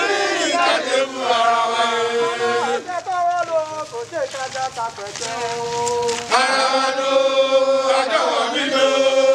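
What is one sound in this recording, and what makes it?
A crowd of men chants and sings together loudly.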